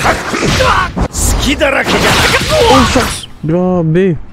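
A young man talks excitedly and loudly close to a microphone.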